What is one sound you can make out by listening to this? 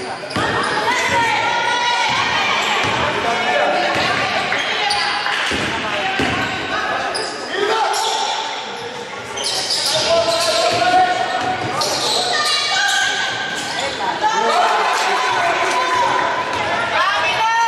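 Spectators shout and call out in an echoing hall.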